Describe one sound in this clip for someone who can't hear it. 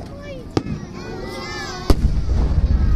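Fireworks burst overhead with sharp, loud bangs.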